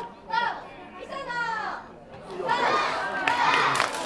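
Players on the sideline cheer and shout from a distance.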